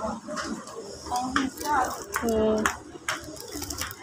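Plastic packaging crinkles as a hand handles it.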